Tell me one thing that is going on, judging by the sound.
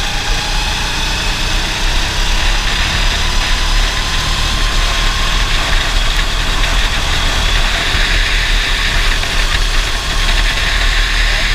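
Wind rushes past a moving open kart.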